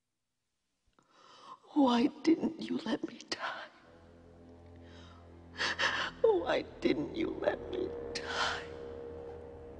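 A woman sobs and whimpers close by.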